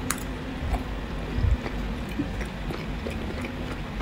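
Chopsticks clink against a plate.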